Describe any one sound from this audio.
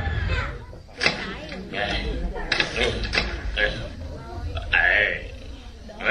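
Garden shears snip sharply.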